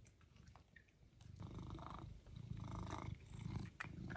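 A cat licks and laps at a treat close by.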